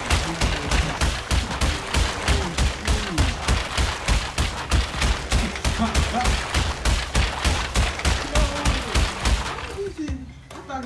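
Wooden crates drop and smash one after another in rapid succession.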